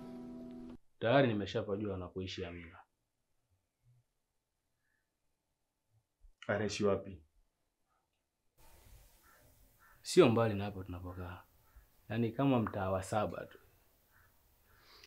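A man speaks calmly and earnestly, close by.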